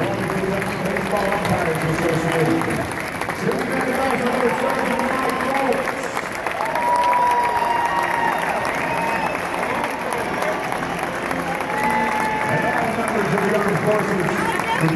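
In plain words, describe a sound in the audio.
Many voices shout and whistle from the crowd.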